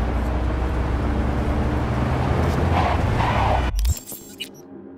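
A car engine rumbles loudly as the car drives along.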